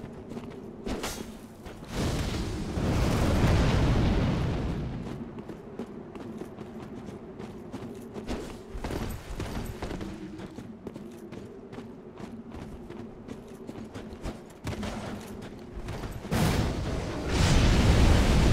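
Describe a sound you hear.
A sword swings with a whoosh.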